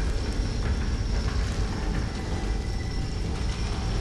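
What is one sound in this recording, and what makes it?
A heavy metal gate grinds as it rises.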